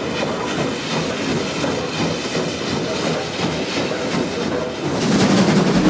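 Steam hisses from a train at a platform.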